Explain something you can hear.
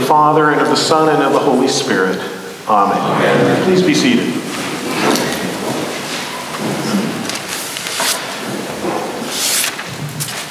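A middle-aged man speaks with animation in a room with some echo.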